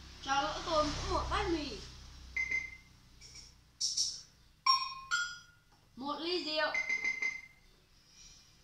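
An electronic keyboard plays bright synthesized notes and sound effects close by.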